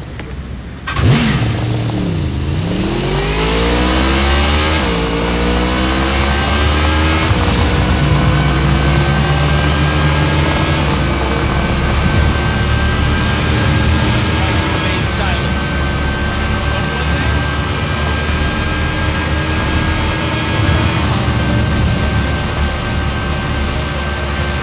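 A motorcycle engine revs up and drones steadily at speed.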